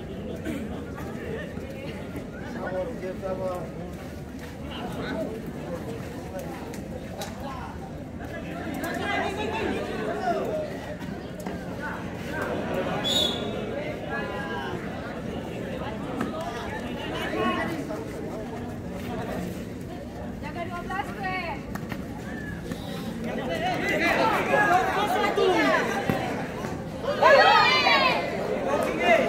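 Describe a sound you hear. A large crowd of spectators chatters and cheers outdoors.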